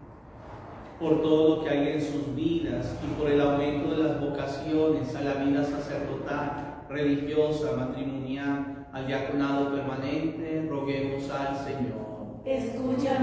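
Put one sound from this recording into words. A man speaks calmly into a microphone in an echoing room.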